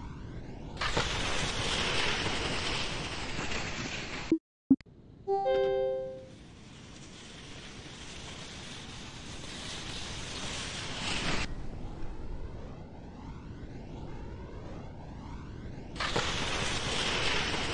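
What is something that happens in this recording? Wind rushes loudly past a ski jumper in flight.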